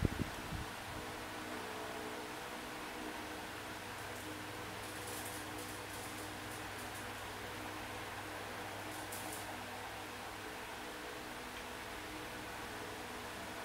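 A finger swipes and taps on a glass touchscreen.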